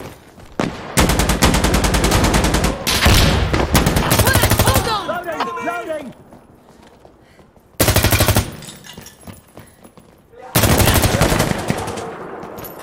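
An automatic rifle fires in rapid bursts indoors.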